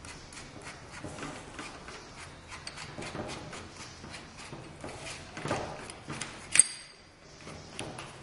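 A drill bit slides and rattles into a drill chuck.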